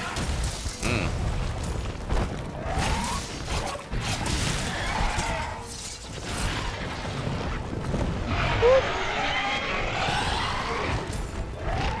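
Fiery explosions burst with deep booms.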